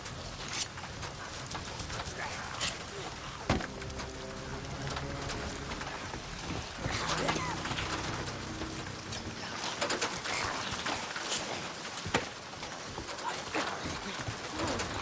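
Metal equipment clicks and clanks under handling.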